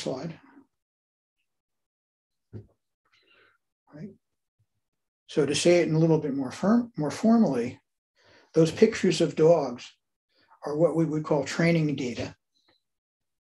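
An elderly man speaks calmly through an online call, with pauses between phrases.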